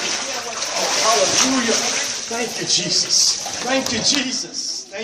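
Water splashes as a person is lowered into a pool.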